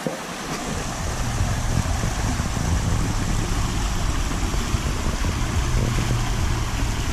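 A man splashes through water as he wades across a stream.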